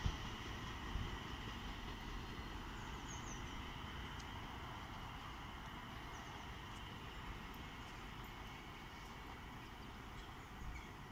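A train rumbles far off as it slowly approaches.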